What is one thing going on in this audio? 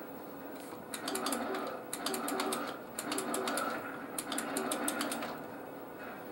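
Rapid video game gunfire crackles through a small television speaker.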